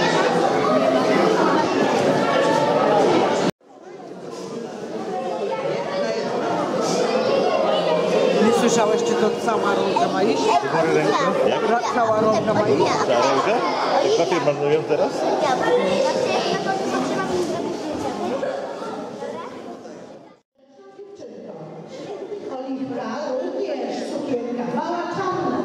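A crowd of adults and children chatters and calls out close by.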